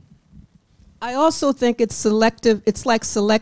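A woman speaks loudly into a microphone.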